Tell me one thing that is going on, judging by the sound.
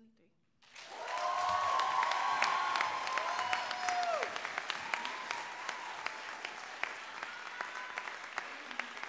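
A crowd cheers and whoops.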